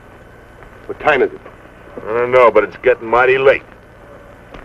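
A man speaks in a low voice nearby.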